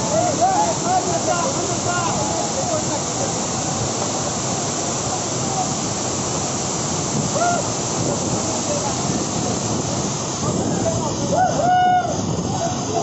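A young man shouts and whoops excitedly close by.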